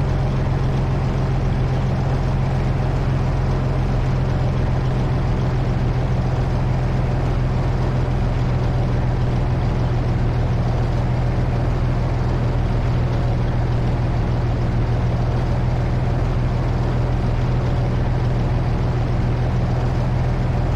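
A heavy tank engine rumbles steadily as the vehicle drives along.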